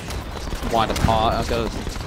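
An explosion bursts loudly close by.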